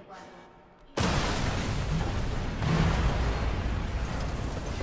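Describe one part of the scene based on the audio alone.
Glass and debris crash down loudly from above.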